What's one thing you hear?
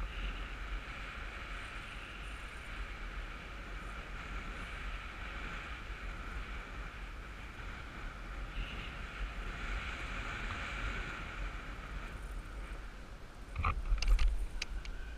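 Wind rushes and buffets loudly past outdoors.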